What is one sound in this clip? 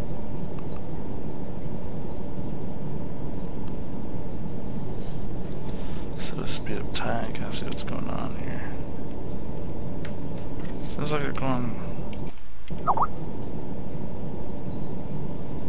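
Sea waves wash and rumble steadily.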